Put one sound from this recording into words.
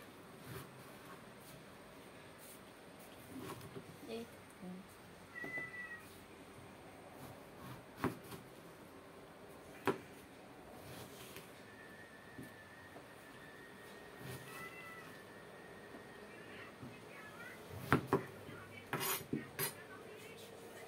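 A knife chops through vegetables onto a plastic cutting board.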